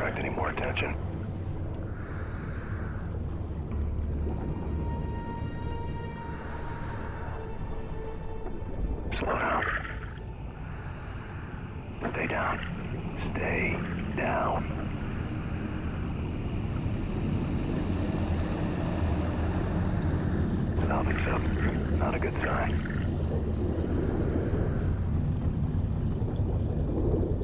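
Bubbles gurgle and stream past.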